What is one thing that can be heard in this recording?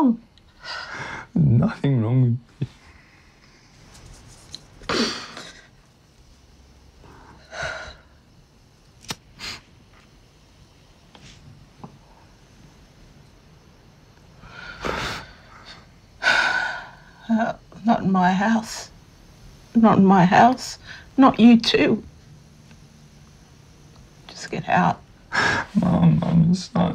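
A young man speaks quietly up close.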